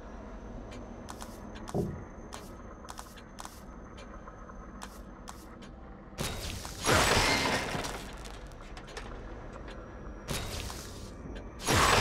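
Soft menu clicks tick one after another.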